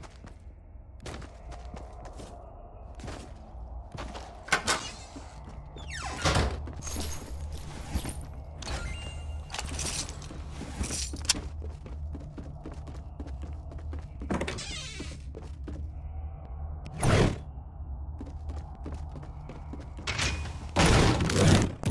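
Footsteps thud on wooden floors.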